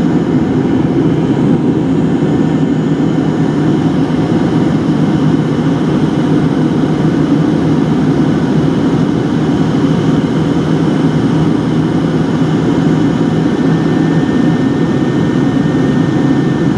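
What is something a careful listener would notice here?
A jet engine roars steadily, heard from inside an airplane cabin.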